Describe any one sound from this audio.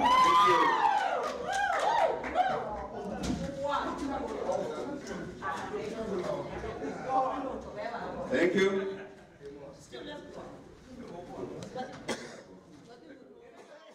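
A crowd of men and women shouts and argues loudly in an echoing hall.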